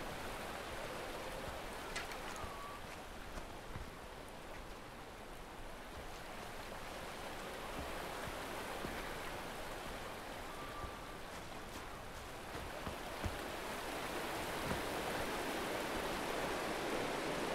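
Footsteps crunch through grass and earth.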